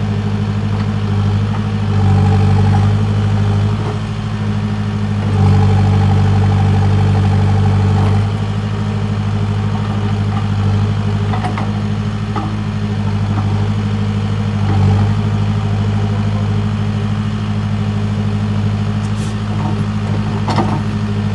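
A digger bucket scrapes and thuds into soil.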